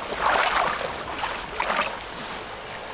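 Water splashes around a swimmer.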